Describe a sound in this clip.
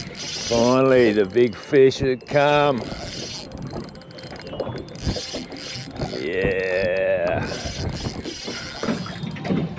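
A fishing reel clicks and whirs as it is wound.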